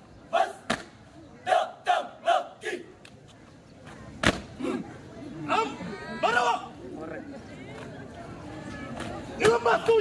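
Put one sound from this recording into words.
A group of young men and women shout in unison outdoors.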